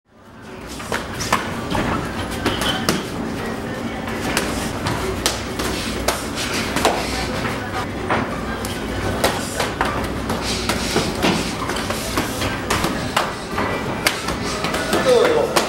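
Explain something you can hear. Boxing gloves smack against pads and bodies in quick bursts.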